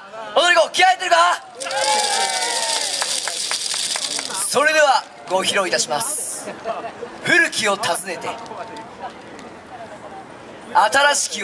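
A large group of young men and women shout together in rhythmic chants outdoors.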